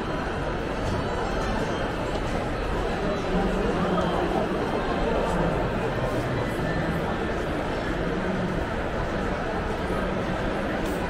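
A crowd of people chatters in an indoor space that echoes a little.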